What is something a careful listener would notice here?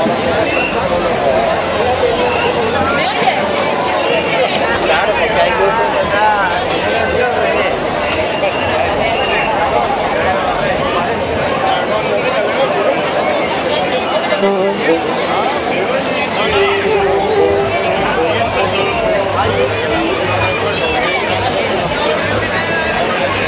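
A lively crowd of men and women chatters and calls out outdoors.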